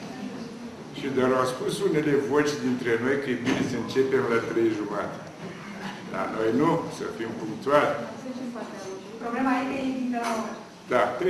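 An elderly man speaks calmly into a nearby microphone.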